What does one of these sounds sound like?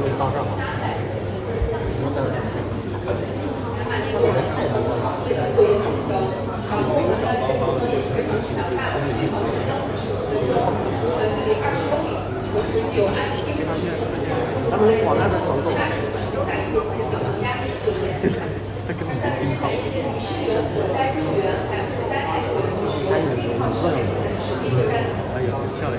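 A crowd of men murmur and talk at once nearby, indoors.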